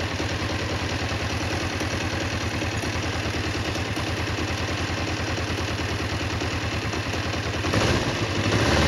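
A motorcycle engine idles with a steady, rapid throb.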